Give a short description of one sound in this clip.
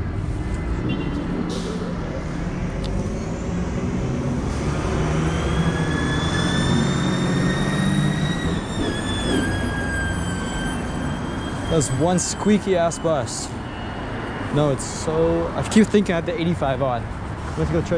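City traffic rumbles steadily nearby, outdoors.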